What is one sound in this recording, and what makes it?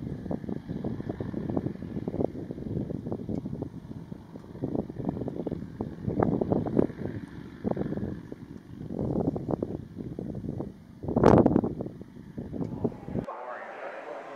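Motorcycles rumble far off on an open road.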